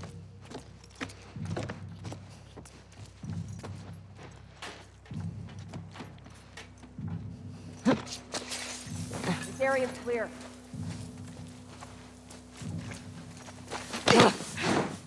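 Soft footsteps creep across a floor and through grass.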